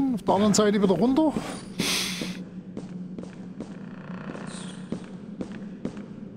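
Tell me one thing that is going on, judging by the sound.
Footsteps creak down wooden stairs.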